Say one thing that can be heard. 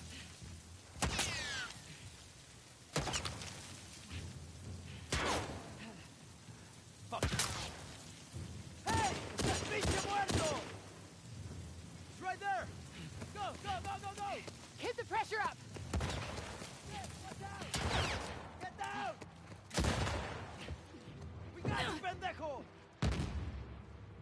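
Gunshots ring out in sharp, echoing bursts.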